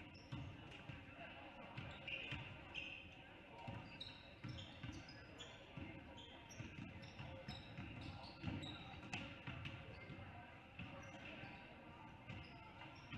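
Basketballs bounce repeatedly on a wooden floor in a large echoing gym.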